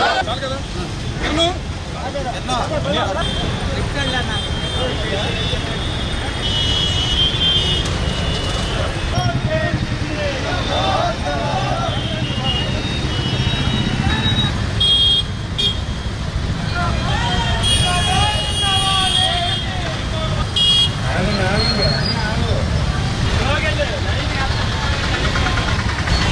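Scooter engines idle and rumble.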